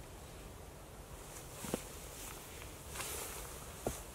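Footsteps rustle through dry leaves close by.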